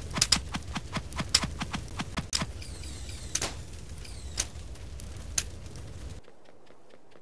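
Quick sharp game blasts of fire go off again and again.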